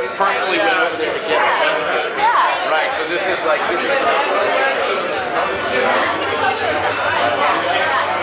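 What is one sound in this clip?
A crowd of adults chatters all around in a busy room.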